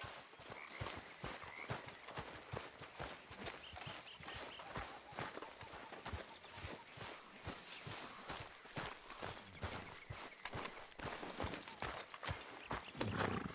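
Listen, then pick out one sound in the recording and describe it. Footsteps crunch on grass and dirt.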